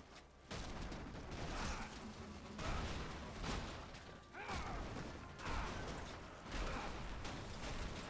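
Metal structures crash and collapse.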